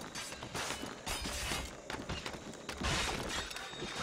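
Wooden rungs creak and knock as someone climbs a ladder.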